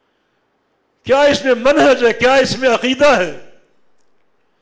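An elderly man speaks into a microphone in a slow, chanting voice, with a faint echo.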